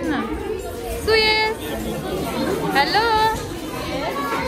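Small children squeal in high voices.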